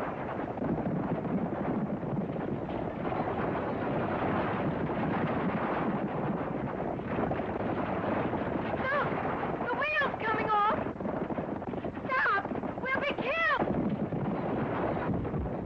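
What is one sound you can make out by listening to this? Horses gallop, pulling a rattling stagecoach.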